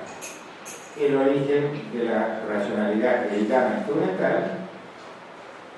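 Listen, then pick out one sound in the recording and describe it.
An elderly man speaks calmly through a microphone in a room with some echo.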